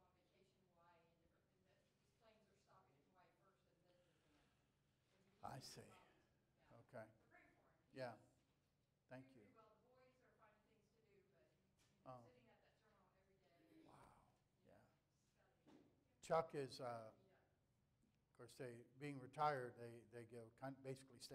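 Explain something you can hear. A man speaks with animation to an audience.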